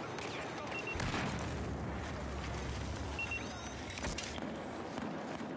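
A deep explosion rumbles and roars.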